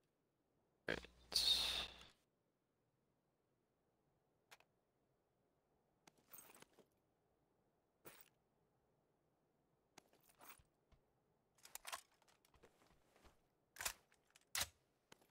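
A man speaks quietly into a close microphone.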